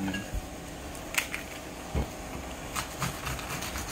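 A knife cuts through vegetables on a plate.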